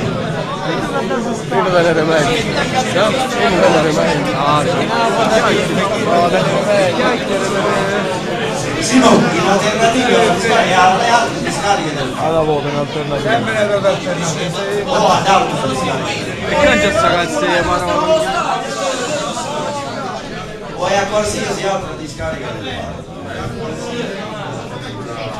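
A man speaks loudly and with animation in a room with some echo.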